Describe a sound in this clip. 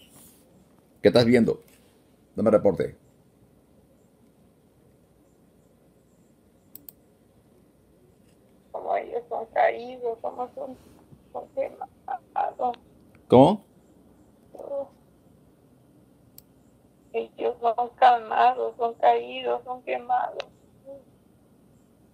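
An elderly woman speaks in an upset voice over a phone video call.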